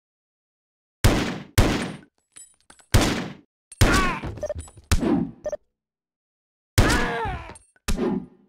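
Gunshots ring out in sharp bursts, with a brief echoing tail.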